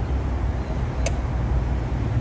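A metal lid snaps shut with a click.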